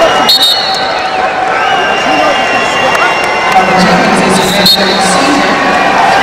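A large indoor crowd cheers and shouts loudly in an echoing arena.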